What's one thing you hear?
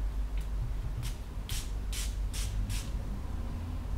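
A perfume bottle sprays in several quick hissing bursts.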